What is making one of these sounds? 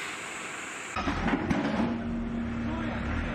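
An excavator engine rumbles and whines close by.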